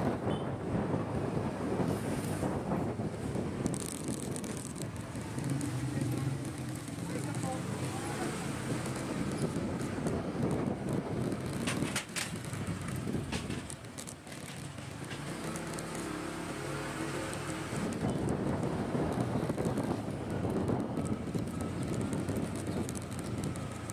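Wind rushes and buffets against a microphone on a moving motorcycle.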